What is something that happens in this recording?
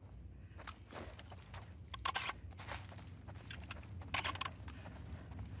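Footsteps crunch over debris on a hard floor.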